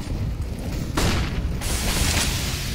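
A flashbang goes off with a sharp bang.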